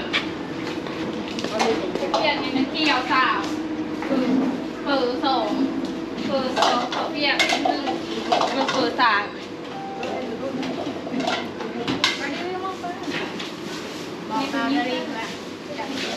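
Young women talk and chatter nearby.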